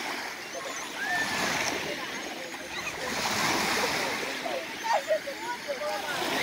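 Young girls call out and chatter nearby.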